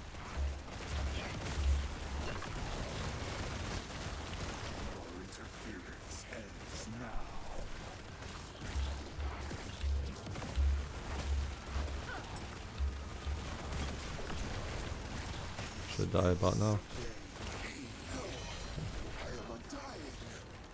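Magic blasts crash and explode in rapid bursts.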